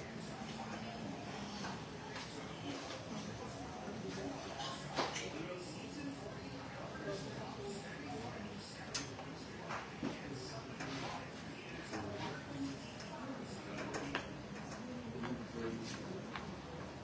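Men chatter and murmur in the background throughout.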